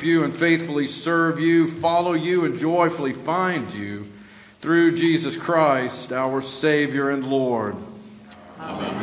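A congregation sings a hymn together in a large echoing hall.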